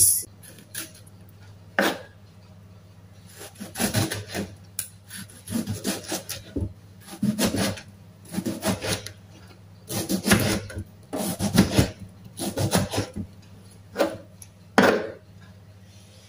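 A knife slices through a tomato and taps on a wooden cutting board.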